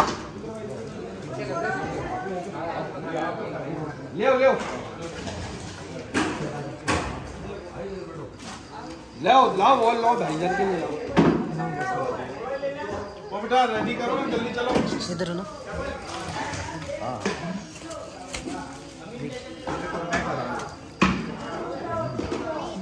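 Several men talk close by, with animation.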